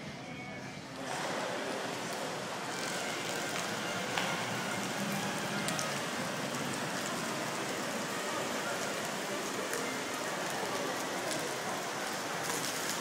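Water splashes and rushes steadily.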